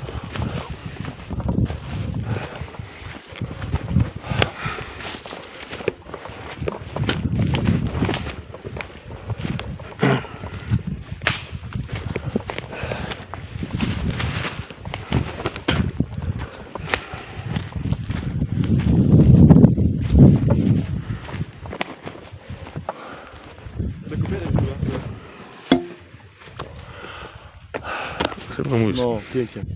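Footsteps swish and rustle through tall grass.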